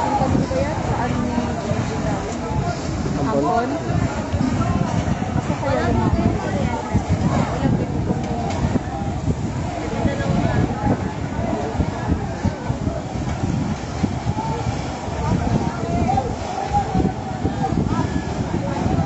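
A crowd of men and women shout and call out nearby outdoors.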